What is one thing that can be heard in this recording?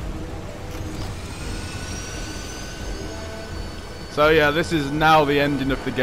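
A jet engine hums and rises in a whine.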